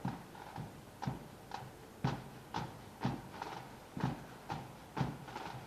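A bass drum beats in a steady, slow rhythm outdoors.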